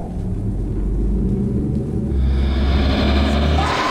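A man speaks in a low, menacing voice.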